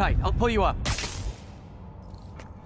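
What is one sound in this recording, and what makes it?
Electric sparks crackle and fizz.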